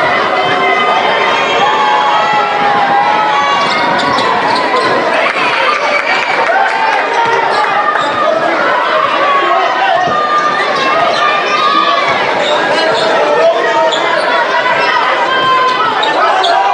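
A crowd cheers and chatters loudly in a large echoing gym.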